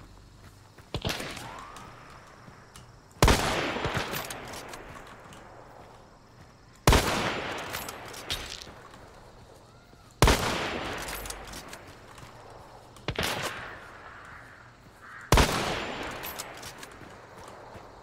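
Loud rifle shots crack and echo outdoors.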